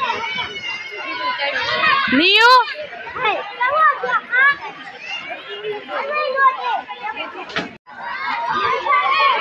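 Young girls chatter and squeal playfully nearby.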